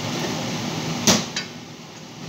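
A wooden cabinet door knocks shut.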